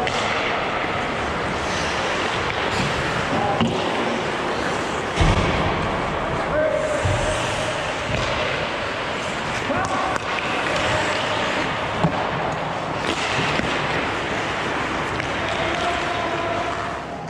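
Players shout and call out to each other across the rink.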